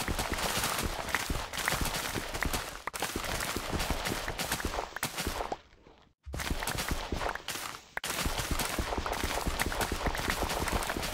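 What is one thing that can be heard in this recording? Crops snap and crunch in quick, soft pops as they are harvested.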